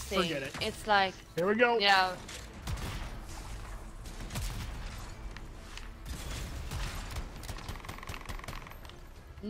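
Energy weapons fire and blasts crackle.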